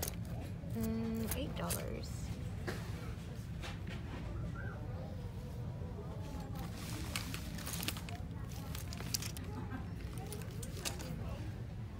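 Hands rustle and tap through wallets packed in a wire bin, close by.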